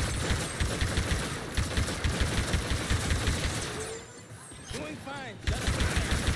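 Rapid laser gunfire rattles in quick bursts.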